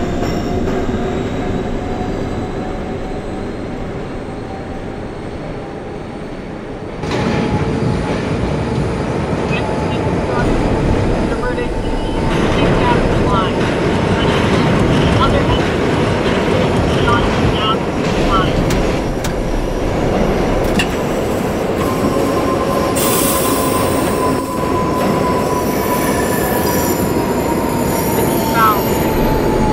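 A subway train rumbles and rattles along the tracks.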